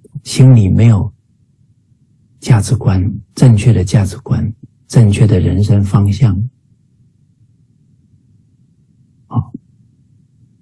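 A middle-aged man speaks calmly and close to the microphone, heard through an online call.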